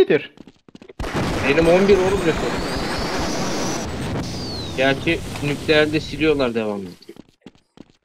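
A gun fires a loud, crackling energy beam.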